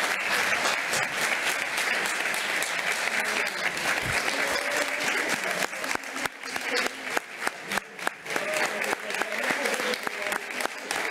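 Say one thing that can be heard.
A crowd applauds steadily in a large room.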